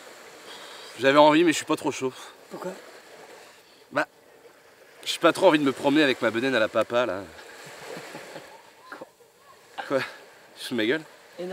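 A young man talks calmly up close.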